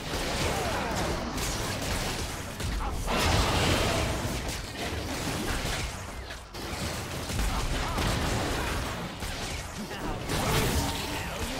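Magical spell effects whoosh and crackle in a fast fight.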